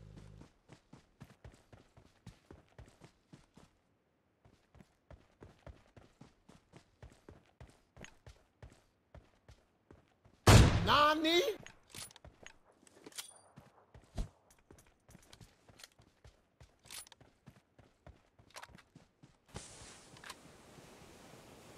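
Footsteps thud quickly and steadily on grass and dirt.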